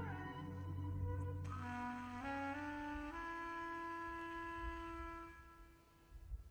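A woman sings into a microphone, holding long notes.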